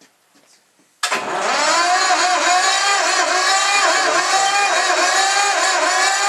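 An engine starts up suddenly and runs with a loud, steady, droning whine.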